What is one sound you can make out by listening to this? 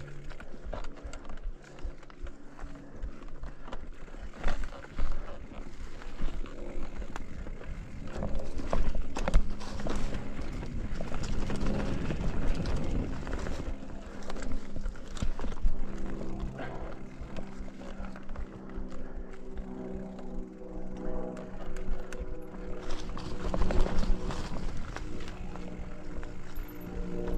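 Bicycle tyres roll and crunch over dry leaves and dirt.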